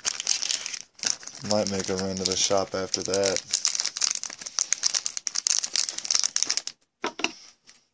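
A foil wrapper crinkles and rustles up close.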